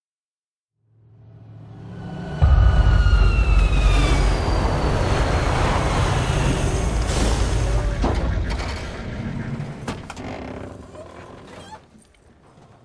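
A heavy truck engine roars loudly and slowly fades.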